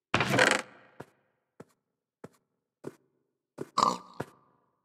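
Short soft clicks sound one after another.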